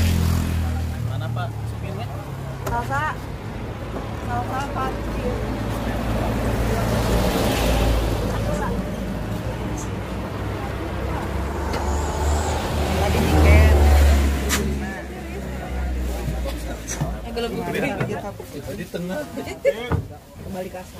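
A bus engine rumbles low and steady.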